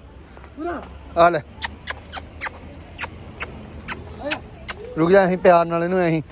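A small dog whines and yelps close by.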